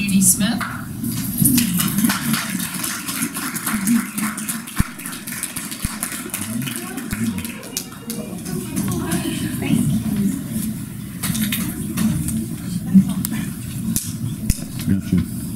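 Several adults laugh and murmur together nearby.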